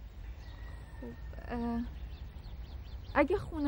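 A woman speaks softly, close by.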